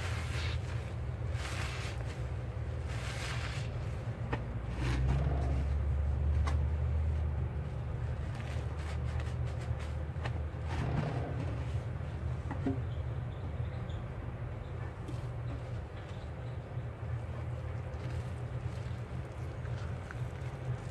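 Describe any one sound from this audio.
A sponge squelches as hands squeeze it in soapy water.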